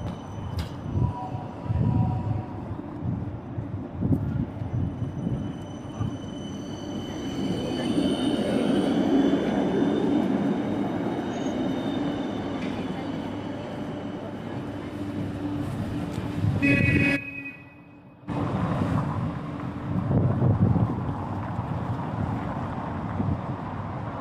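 Outdoor street noise hums steadily.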